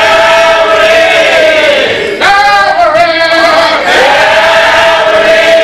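A man sings loudly with strong feeling.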